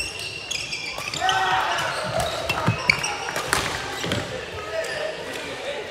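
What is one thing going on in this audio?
Men shout and call out nearby during play.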